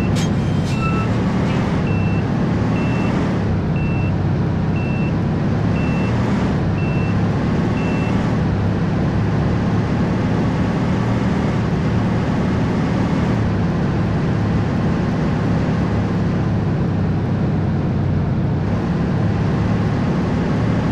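A truck engine hums low and steady as the truck drives along a road.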